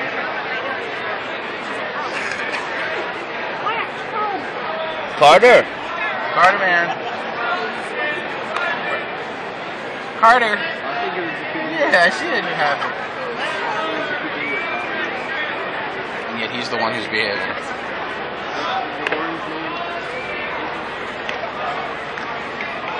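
A crowd murmurs and chatters all around in a large open stadium.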